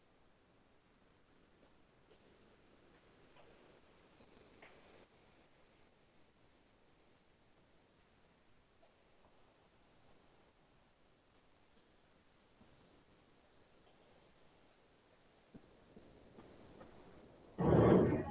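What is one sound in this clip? A man speaks quietly through an online call.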